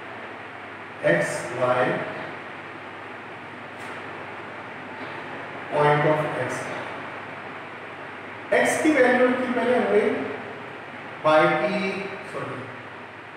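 A man speaks in short bursts, calmly explaining, close by.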